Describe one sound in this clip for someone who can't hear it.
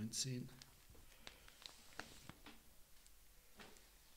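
A newspaper rustles as its pages are handled.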